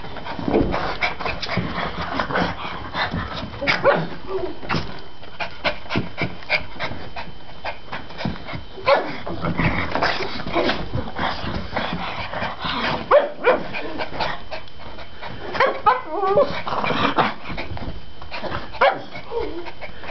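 Small dogs bark and yip excitedly.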